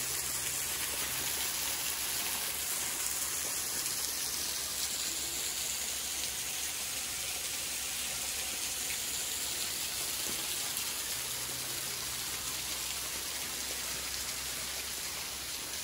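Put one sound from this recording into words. Water falls and splashes steadily onto rock nearby.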